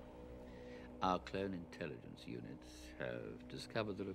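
An elderly man speaks quietly and gravely.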